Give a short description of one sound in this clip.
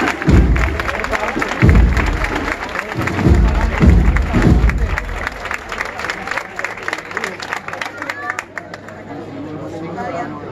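A crowd claps hands rhythmically outdoors.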